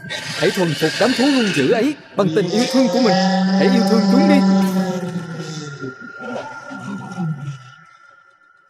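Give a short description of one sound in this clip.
A man speaks in an animated, cartoonish voice.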